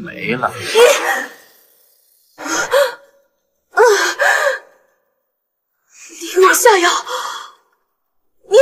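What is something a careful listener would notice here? A young woman speaks angrily and close by.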